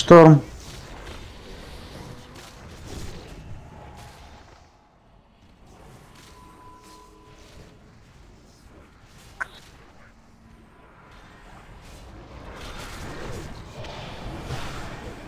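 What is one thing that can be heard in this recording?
Magic spells whoosh and crackle amid a noisy battle.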